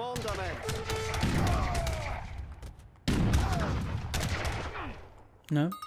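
Cannon blasts boom and rumble.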